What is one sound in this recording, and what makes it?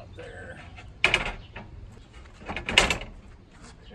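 Metal panels clatter and clank as they are set down.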